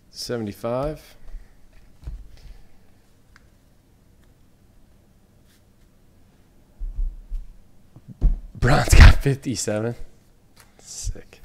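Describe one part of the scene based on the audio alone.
Trading cards rustle and slide as hands handle them.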